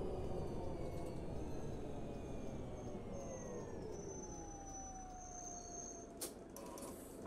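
A bus engine hums and winds down as the bus slows to a stop.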